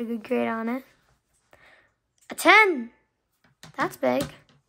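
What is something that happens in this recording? Hard plastic card cases click and clack softly as hands handle them.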